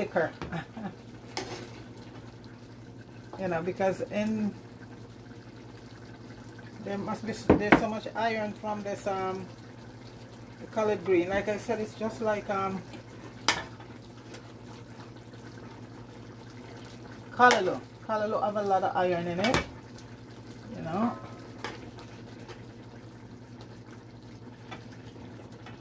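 A metal spoon scrapes and clinks against a cooking pot.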